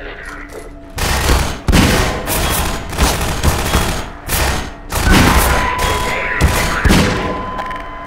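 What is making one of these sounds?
A revolver fires loud, booming shots that echo.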